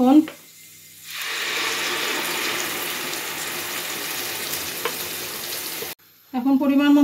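Paste sizzles loudly as it hits hot oil in a pan.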